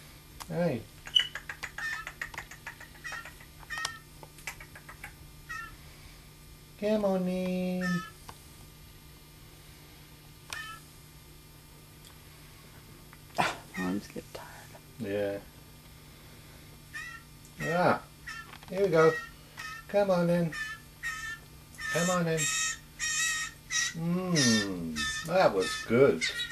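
A young bird chirps repeatedly in short high peeps.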